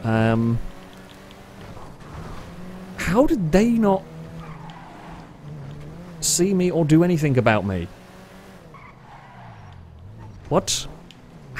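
A car engine hums steadily as a car drives along a road.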